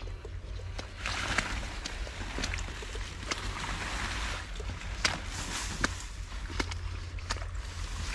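Leaves rustle and swish as a man wades through dense plants.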